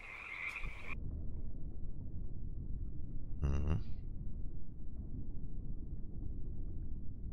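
Muffled water murmurs softly underwater.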